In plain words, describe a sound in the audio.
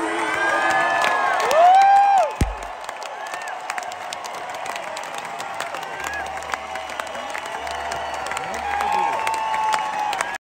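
A drummer taps on drums and cymbals.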